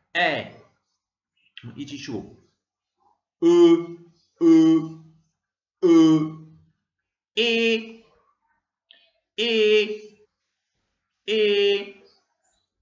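A young man speaks slowly and clearly into a close microphone, pausing between short syllables.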